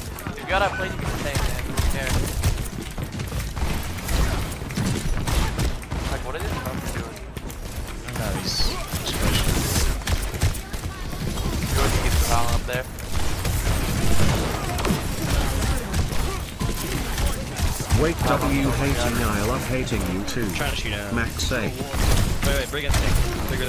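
Gunshots fire rapidly from a game.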